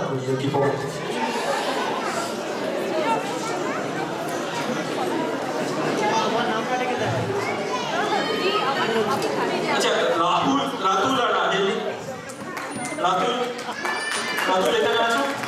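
A man speaks into a microphone with animation, heard through loudspeakers in a large hall.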